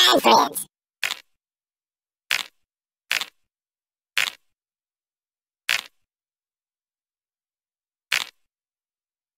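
A game menu page flips with a short click.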